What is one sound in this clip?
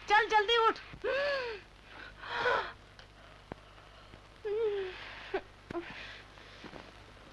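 A young woman sobs and gasps.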